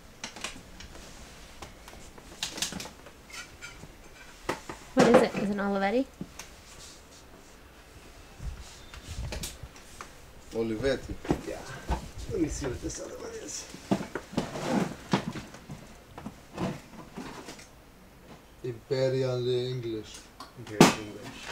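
Objects clink and knock as they are handled.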